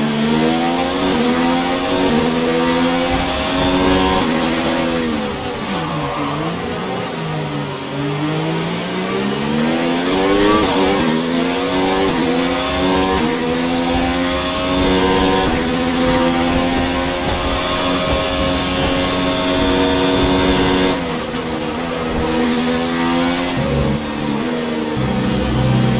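A racing car engine screams at high revs, dropping in pitch when braking and rising again as it accelerates through the gears.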